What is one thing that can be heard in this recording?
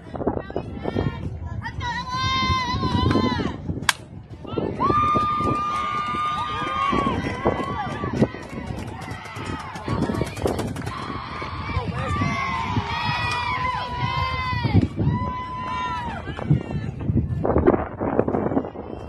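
Young women cheer and shout loudly nearby.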